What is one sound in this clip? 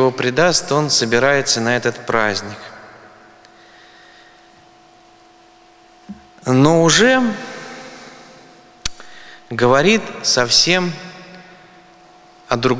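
A man speaks calmly into a microphone, in pauses, over a loudspeaker in a large echoing hall.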